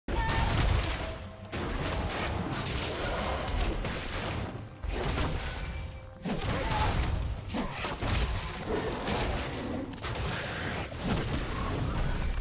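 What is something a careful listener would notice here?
Combat sound effects clash and blast in quick bursts.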